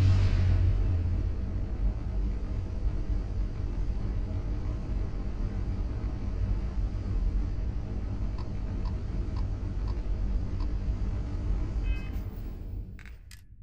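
A spaceship engine rumbles steadily and deeply.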